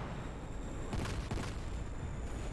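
An explosion bursts with a loud bang.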